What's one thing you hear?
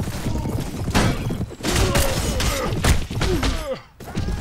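Weapons clash in a brief melee.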